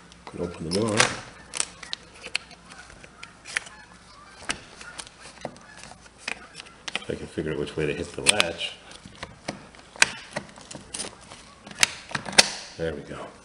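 A window latch clicks and rattles as it is handled.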